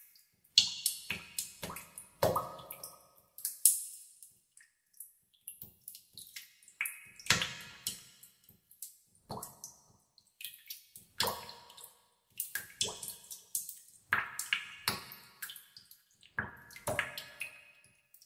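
Drops of water plink and splash into still water, one after another.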